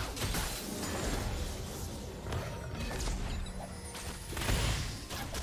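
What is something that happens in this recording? Game sound effects of spells and attacks crackle and whoosh.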